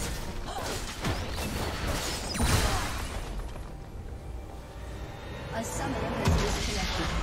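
Game spell effects crackle and clash in a battle.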